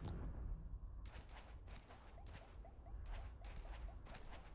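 A large creature's feet thud steadily on sand.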